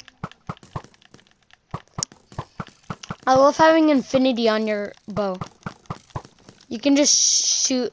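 Footsteps tap steadily on a wooden floor.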